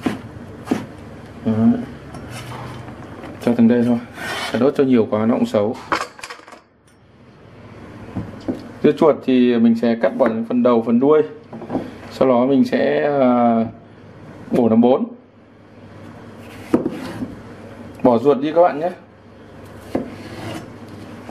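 A knife chops on a plastic cutting board.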